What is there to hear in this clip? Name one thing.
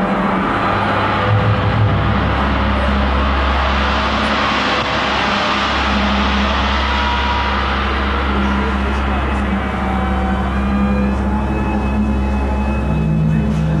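A deep, heavy bass beat comes in partway and keeps thumping.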